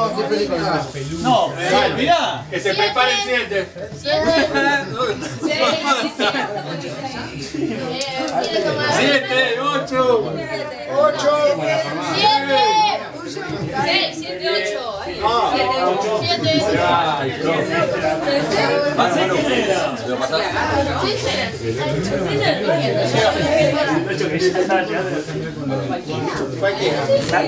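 Several young people talk and chatter at once nearby, a little muffled.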